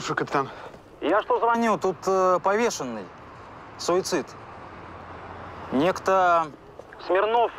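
A man speaks calmly into a phone.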